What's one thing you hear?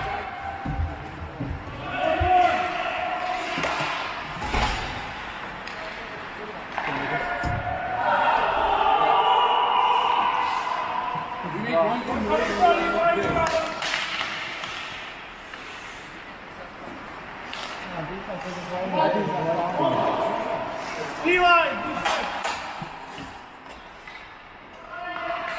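Ice hockey skates scrape across the ice in an echoing rink.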